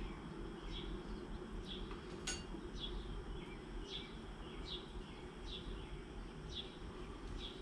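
A small gas burner hisses steadily.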